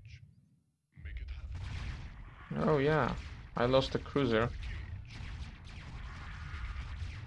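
Weapons fire and blasts crackle steadily in a video game battle.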